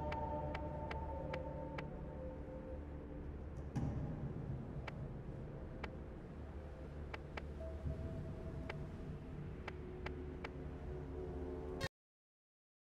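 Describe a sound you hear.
Short sharp clicks tick again and again as a menu selection moves.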